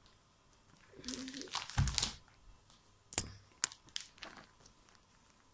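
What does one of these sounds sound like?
Paper rustles close by.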